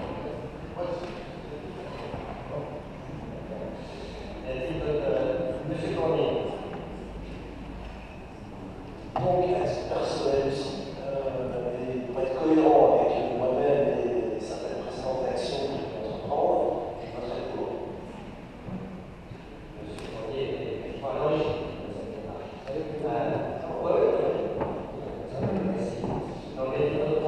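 People murmur quietly in the background.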